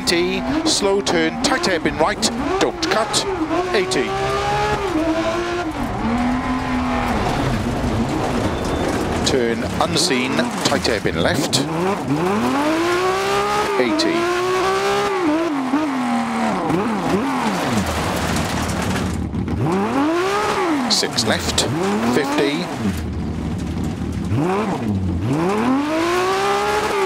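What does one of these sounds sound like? A rally car engine revs hard, rising in pitch and dropping at each gear change.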